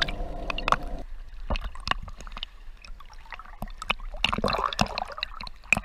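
Small waves lap and splash close by at the surface.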